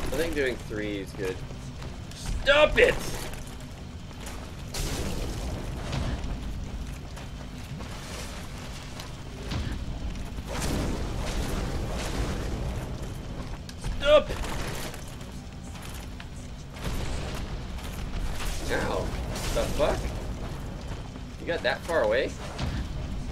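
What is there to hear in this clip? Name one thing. A man speaks casually into a headset microphone, in short bursts.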